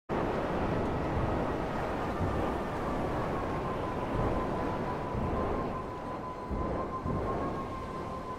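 A jet ski engine whines steadily over the water.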